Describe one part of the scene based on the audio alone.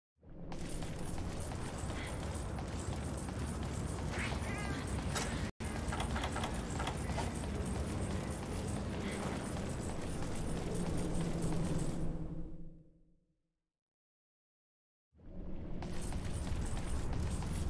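Footsteps crunch over rocky ground at a run.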